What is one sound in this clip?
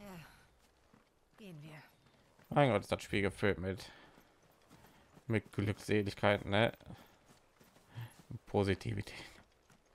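Footsteps run over grass and a dirt path.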